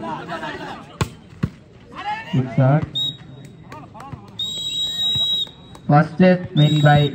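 Young men shout and call out loudly outdoors.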